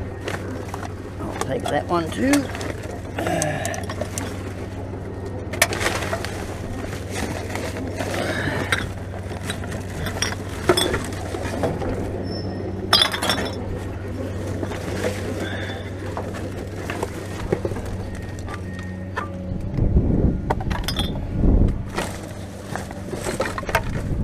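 Plastic bags and paper rustle and crinkle as hands rummage through rubbish.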